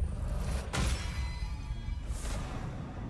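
A bright game menu chime rings out and fades.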